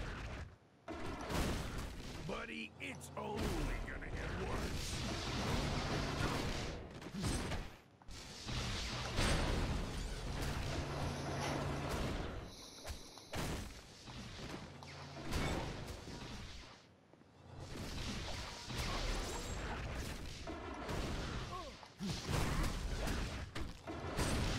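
Weapons clash and strike in rapid blows.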